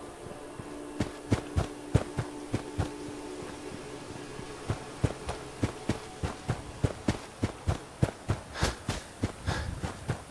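Footsteps crunch over dry grass and dirt at a walking pace.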